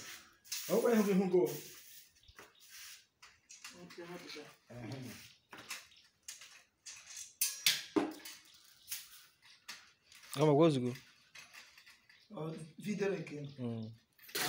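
Metal chandelier parts clink and rattle.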